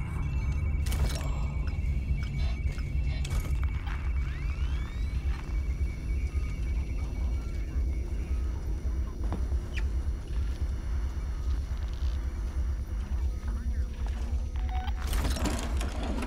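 A handheld motion tracker pings now and then.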